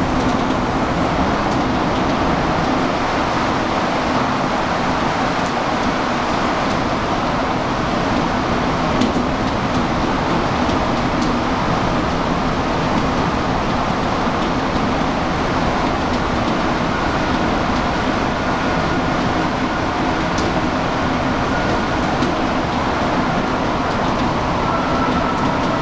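A subway car rumbles and roars loudly along the tracks.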